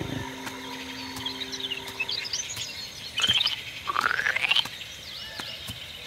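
Playful electronic chirps and bleeps sound from a game.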